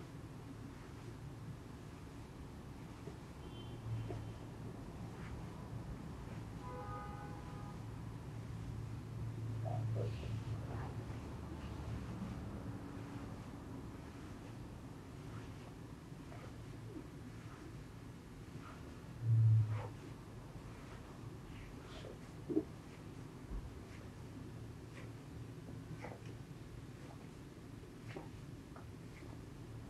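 Hands rub and knead against denim fabric with a soft rustle.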